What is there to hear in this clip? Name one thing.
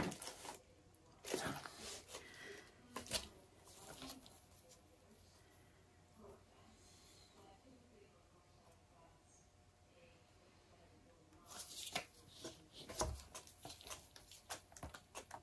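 Gloved hands shift a canvas, knocking it on a tabletop.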